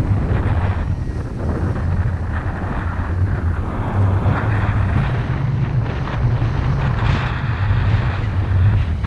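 Strong wind rushes and buffets loudly against a microphone.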